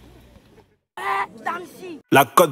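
A boy shouts loudly.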